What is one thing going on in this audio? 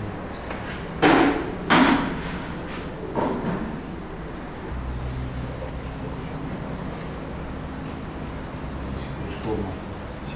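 Hands pat and press wet cement into a mould.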